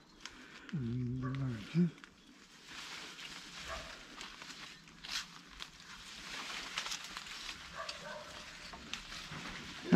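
Leaves rustle and branches shake as a man pulls at a tree.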